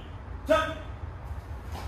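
A man lets out a short, sharp shout.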